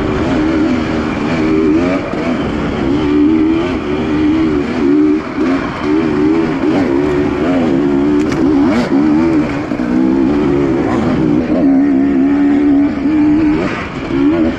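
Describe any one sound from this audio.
A dirt bike engine revs and drones up close, rising and falling in pitch.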